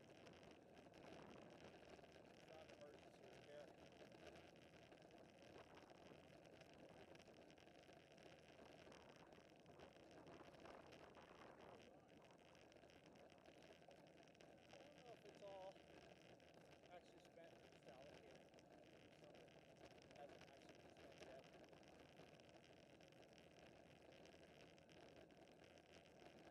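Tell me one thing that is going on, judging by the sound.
Bicycle tyres hum on a paved road.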